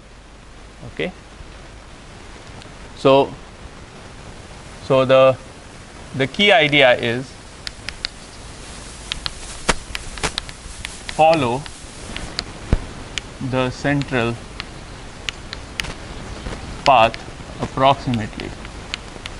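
A man speaks calmly in short phrases in a large room.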